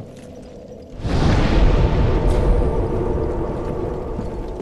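A deep roaring rush swells up suddenly and rumbles on.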